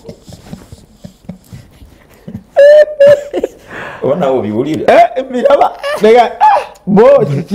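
A man laughs loudly through a microphone.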